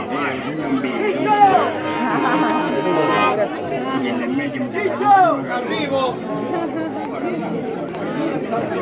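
A crowd of men and women talks and calls out all around outdoors.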